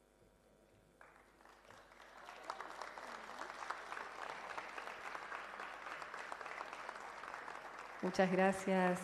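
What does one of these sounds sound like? An audience applauds in a large hall.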